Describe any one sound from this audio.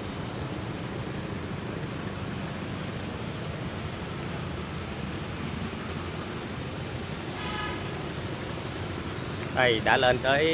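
Footsteps climb stone steps.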